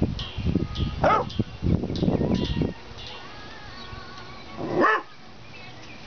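A puppy gives a short high yelp.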